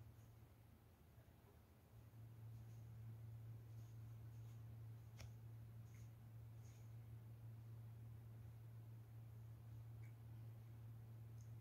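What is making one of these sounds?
A paintbrush softly brushes across fabric.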